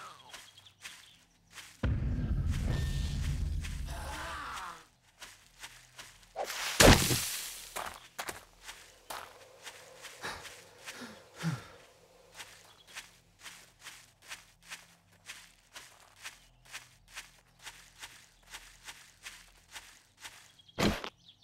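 Footsteps crunch steadily over dry ground.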